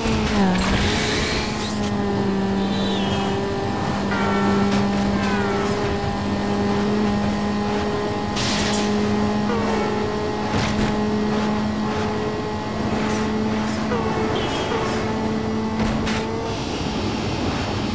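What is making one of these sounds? A car engine roars at a steady high pitch at top speed.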